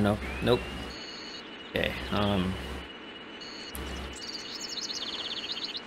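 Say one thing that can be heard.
Electronic game sound effects zap and chirp.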